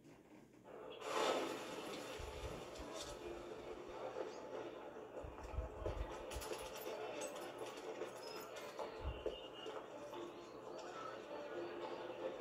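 Video game music and effects play from a television speaker.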